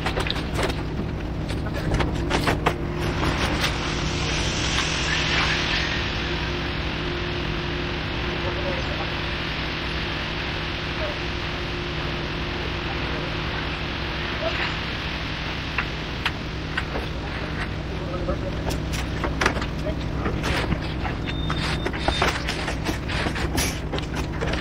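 Wet concrete pours and slops from a chute.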